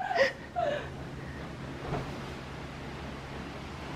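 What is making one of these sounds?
A woman flops onto a soft bed with a muffled thump.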